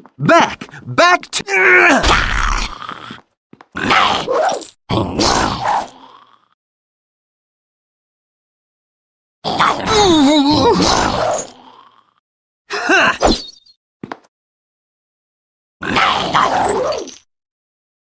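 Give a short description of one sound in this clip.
A sword slashes and clangs in a fight.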